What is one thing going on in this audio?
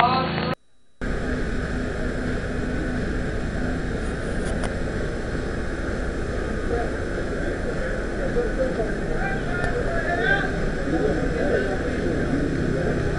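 A crowd of people talks nearby outdoors.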